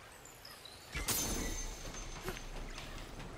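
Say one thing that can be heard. A magical burst whooshes and rings.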